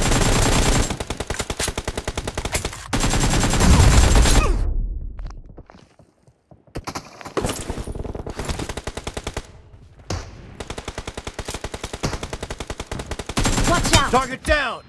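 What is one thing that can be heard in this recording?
An assault rifle fires rapid automatic bursts.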